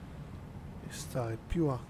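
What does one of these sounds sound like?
A man talks briefly, close to a microphone.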